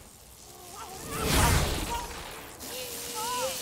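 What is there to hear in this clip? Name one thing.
An electric zap crackles loudly.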